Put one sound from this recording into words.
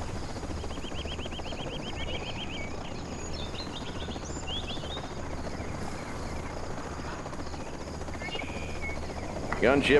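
Jet aircraft drone past overhead.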